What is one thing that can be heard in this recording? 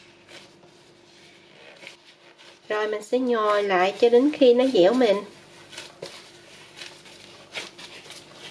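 Hands knead soft dough with quiet squishing and patting.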